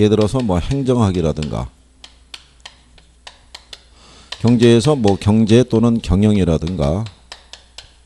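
A middle-aged man lectures calmly and clearly through a microphone.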